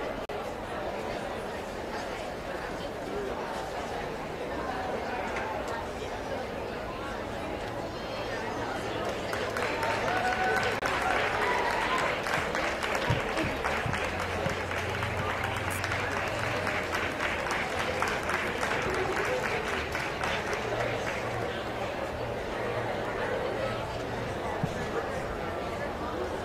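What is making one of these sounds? A crowd murmurs and chatters in a large, echoing hall.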